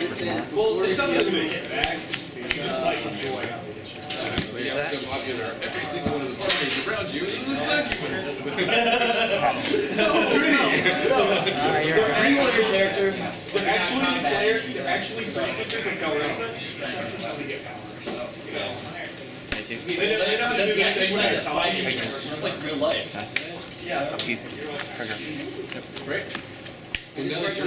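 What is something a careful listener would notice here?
Playing cards riffle and flick as a deck is shuffled by hand.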